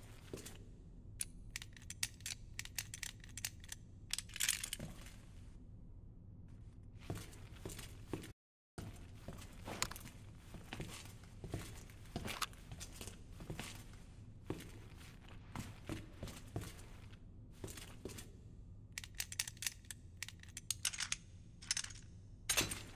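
The dials of a combination padlock click as they turn.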